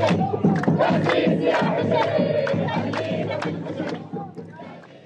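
A crowd chants and shouts loudly outdoors.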